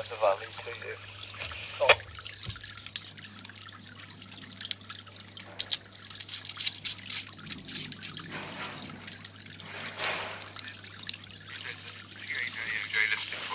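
Metal cable connectors click and scrape as they are screwed together.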